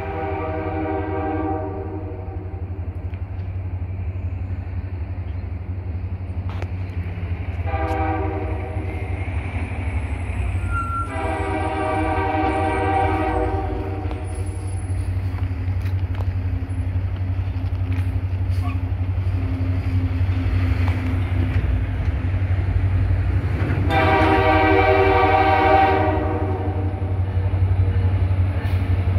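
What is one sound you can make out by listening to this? A diesel locomotive engine rumbles steadily louder as a train approaches.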